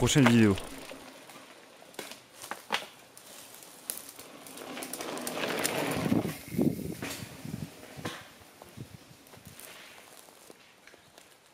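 Bicycle tyres crunch over a dirt trail.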